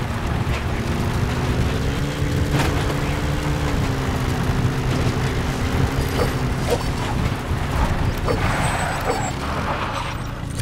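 A jeep engine rumbles steadily as the vehicle drives.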